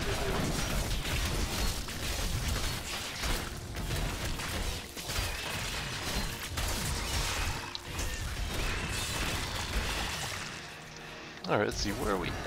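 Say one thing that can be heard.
Magic blasts crackle and burst in quick succession.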